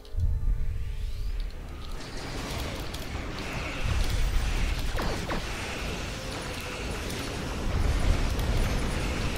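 Energy weapons zap and whine in rapid bursts.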